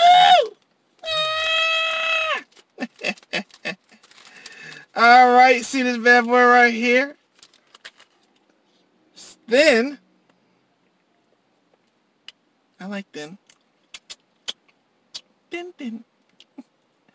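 A man talks animatedly up close, sometimes drawing out his words in a sing-song voice.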